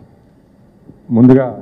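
A man speaks into a microphone, heard through loudspeakers in an echoing hall.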